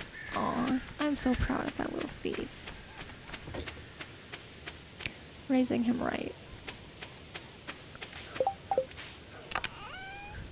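Quick light footsteps patter on dirt.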